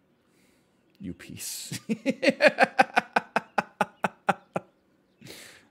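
A man laughs heartily close to a microphone.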